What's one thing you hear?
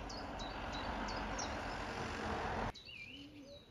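Wind rustles through the branches of a nearby tree.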